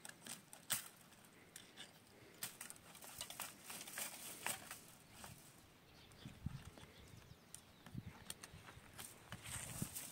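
A metal tool scrapes and scratches at dry soil.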